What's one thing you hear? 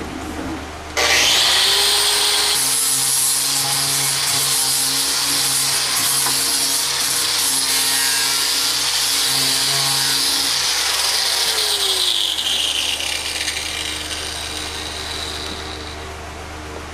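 An angle grinder whines loudly as it grinds wood, then winds down.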